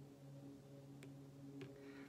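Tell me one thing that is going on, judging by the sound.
A small crystal clicks softly onto a wooden tabletop.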